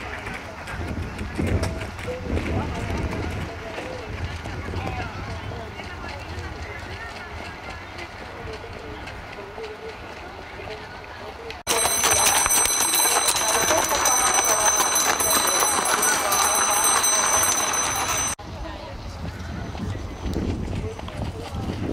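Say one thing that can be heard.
Cart wheels crunch over gravel.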